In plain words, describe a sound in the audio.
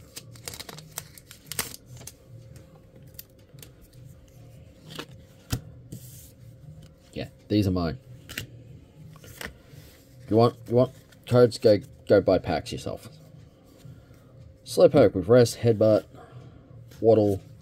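Cards rustle and click as hands shuffle through them.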